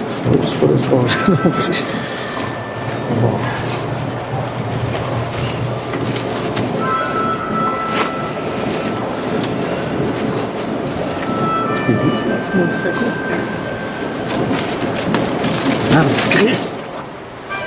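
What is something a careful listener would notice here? A man mutters to himself in a low, annoyed voice close by.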